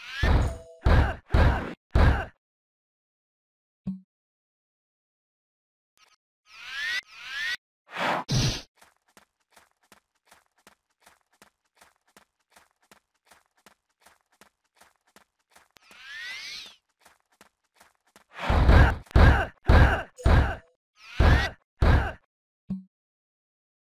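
Magic spell effects whoosh and burst in loud bursts.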